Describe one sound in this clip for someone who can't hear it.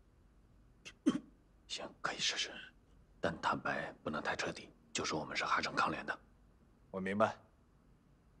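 A man speaks quietly and tensely up close.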